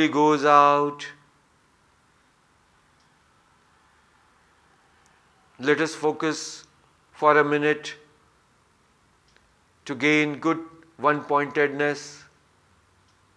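A middle-aged man chants slowly in a deep, steady voice, close to a microphone, with long pauses.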